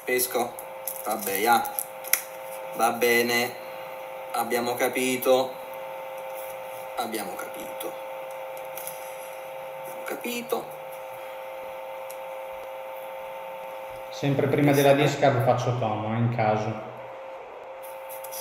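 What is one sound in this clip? Playing cards shuffle and riffle in someone's hands.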